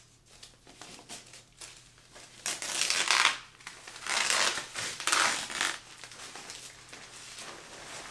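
Plastic wrapping crinkles as it is pulled off.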